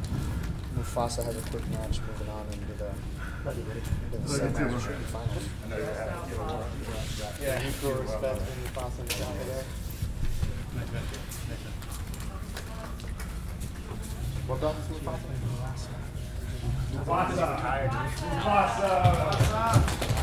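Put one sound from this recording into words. A man talks nearby in a large echoing room.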